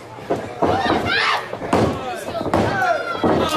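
A referee slaps the ring mat to count.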